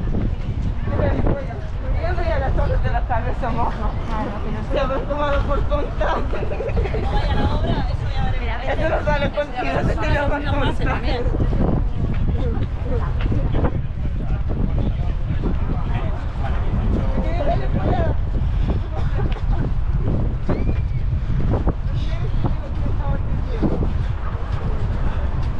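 Women talk nearby with animation.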